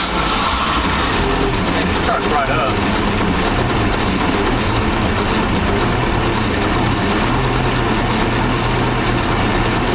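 A boat engine idles with a steady rumble.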